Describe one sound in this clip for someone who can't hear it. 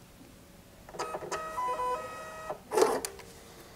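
A small label printer whirs and buzzes as it feeds out a label.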